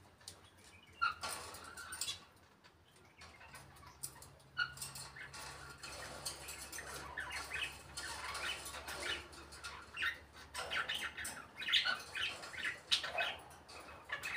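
A parrot squawks and chatters in short bursts close by.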